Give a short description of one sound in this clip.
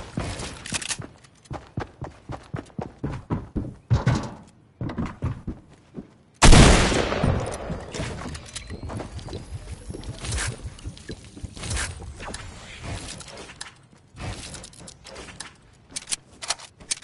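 Building pieces clatter into place in a video game.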